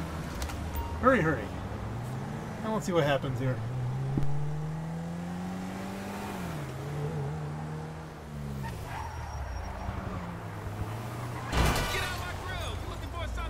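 Tyres skid and scrape on the road.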